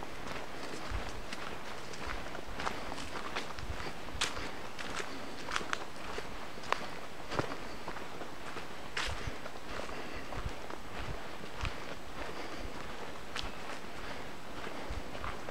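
Footsteps crunch softly on a dirt path outdoors.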